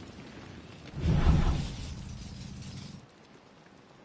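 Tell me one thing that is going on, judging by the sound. A deep booming whoosh swells up and slowly fades.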